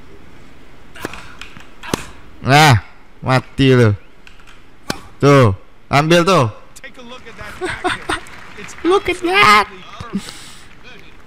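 A tennis ball is struck sharply with a racket, back and forth.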